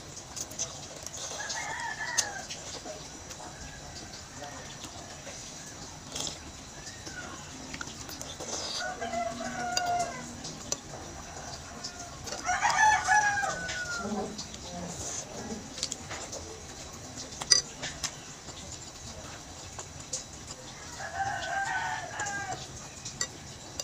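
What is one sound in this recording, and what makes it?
A young woman slurps noodles close to a microphone.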